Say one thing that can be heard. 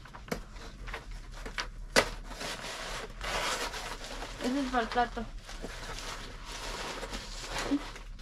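Papers rustle.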